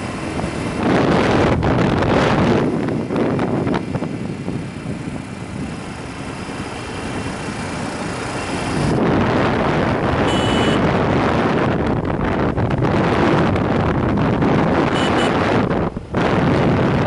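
Wind roars loudly against a moving motorcycle rider.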